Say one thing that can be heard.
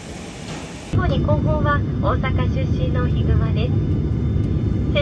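A jet airliner's engines rumble steadily, heard from inside the cabin.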